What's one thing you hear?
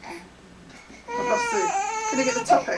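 A baby cries out loudly.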